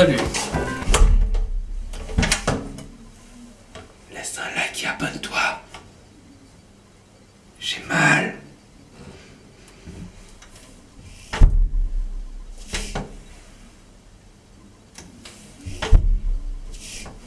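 A door bumps and thuds as it swings shut.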